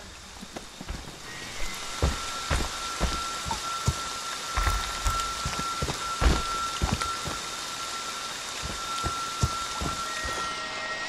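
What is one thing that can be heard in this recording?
Heavy footsteps crunch on gravel.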